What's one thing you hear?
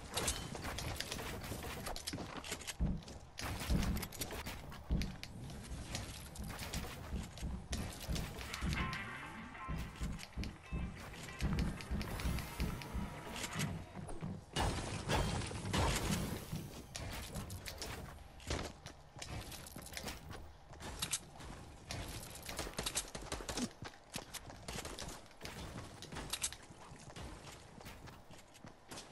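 Quick footsteps thud on wooden and stone floors.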